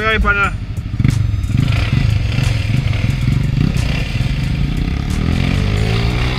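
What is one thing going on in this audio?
A motorcycle engine revs up.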